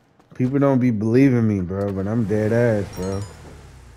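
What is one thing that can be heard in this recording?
A car door clicks open and shuts.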